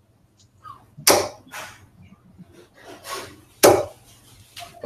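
Darts thud one by one into a bristle dartboard.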